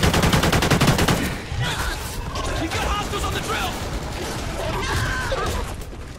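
A monster growls and shrieks.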